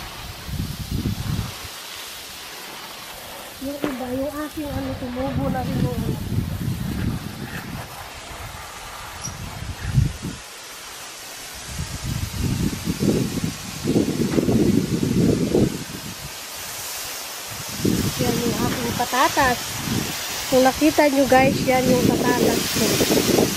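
Water sprays from a garden hose with a steady hiss.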